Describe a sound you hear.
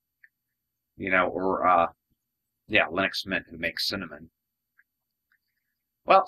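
A young man speaks calmly and closely into a microphone.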